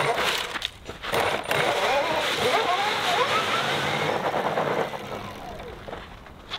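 Tyres crunch and scrape over loose gravel.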